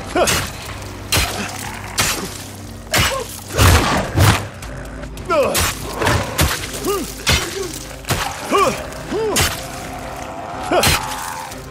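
A man grunts with effort.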